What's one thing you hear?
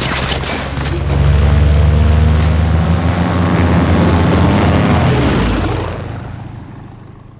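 A propeller plane's engines roar loudly, then fade away.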